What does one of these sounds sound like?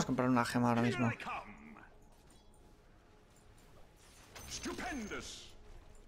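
Game sound effects of a fight clash and zap.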